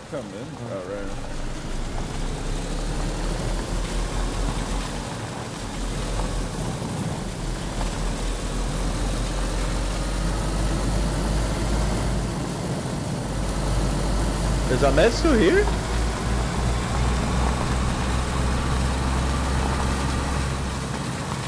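A car engine hums low and steady as a car drives over rough ground.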